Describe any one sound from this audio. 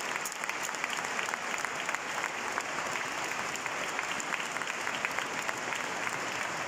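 A crowd applauds steadily in a large echoing hall.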